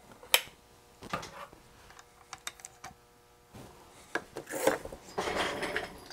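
A plastic board clicks and rattles as it is pulled out of a small vise.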